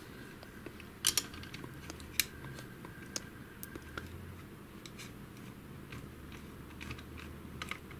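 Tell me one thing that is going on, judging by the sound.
A metal hook clicks and scrapes against a metal bracket.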